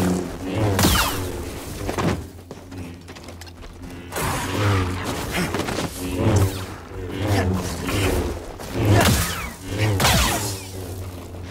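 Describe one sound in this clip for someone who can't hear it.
Energy blades hum and clash against a creature in sharp bursts.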